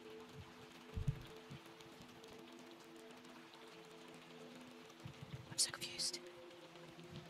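A young woman speaks quietly into a close microphone.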